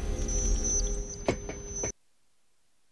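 Machinery hums and whirs loudly.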